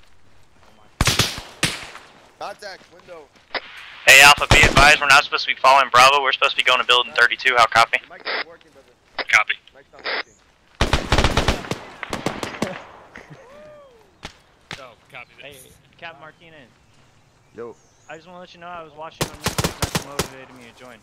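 Rifles fire in rapid bursts of sharp cracks.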